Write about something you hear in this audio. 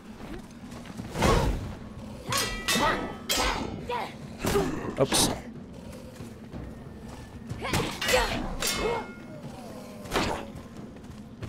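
A metal mace strikes with heavy impacts.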